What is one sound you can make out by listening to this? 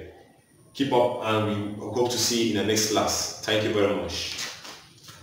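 A young man speaks clearly and steadily, close by, in a room with some echo.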